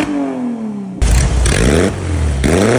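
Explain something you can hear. An old car engine idles with a low, rough rumble.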